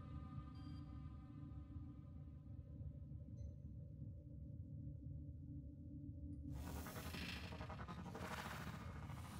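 A deep, steady hum drones throughout.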